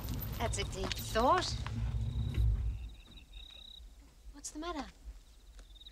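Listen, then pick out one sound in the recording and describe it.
A woman speaks quietly, with emotion.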